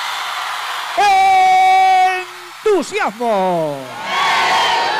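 A man sings with power into a microphone, heard through loudspeakers.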